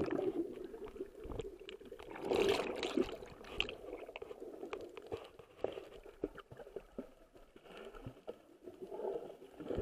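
Air bubbles rush and gurgle close by underwater.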